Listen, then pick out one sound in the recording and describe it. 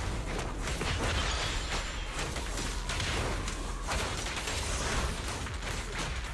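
Fiery sword slashes whoosh and strike in a fast flurry of hits.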